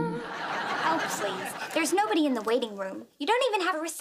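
A young woman speaks tensely.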